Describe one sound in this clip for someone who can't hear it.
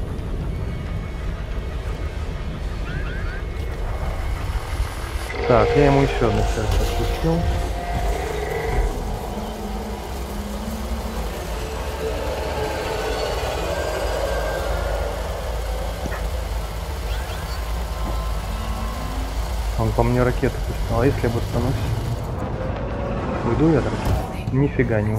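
A spaceship engine drones with a deep, steady rumble.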